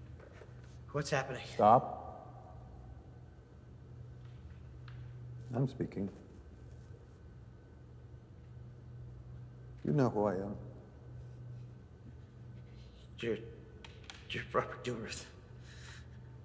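An elderly man speaks slowly and calmly, with long pauses.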